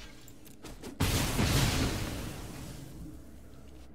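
A heavy magical impact booms and whooshes, then fades.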